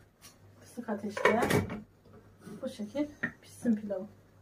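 A metal lid clinks onto a pot.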